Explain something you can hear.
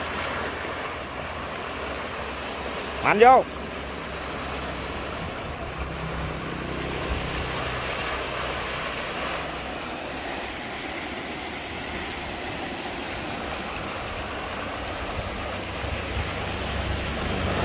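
A pump engine runs.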